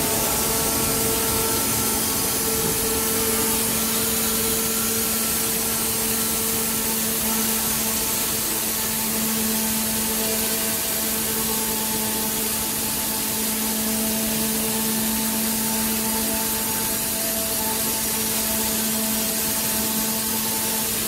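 A woodworking machine hums and whines steadily.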